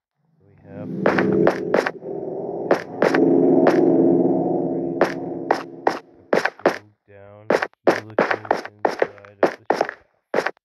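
Footsteps thud on stone as a game character walks down stairs.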